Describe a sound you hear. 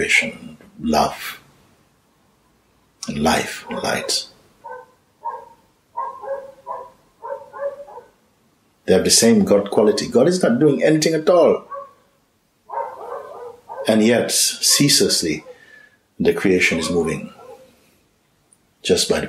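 A man with a deep voice speaks calmly and with feeling into a nearby microphone, pausing now and then.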